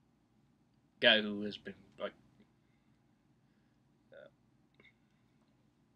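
A young man speaks briefly and expressively close to a microphone.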